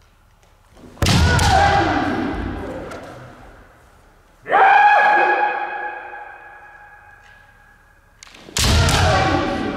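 Bamboo swords strike with sharp cracks.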